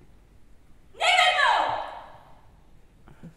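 A young man lets out a loud, sharp shout that echoes in a large hall.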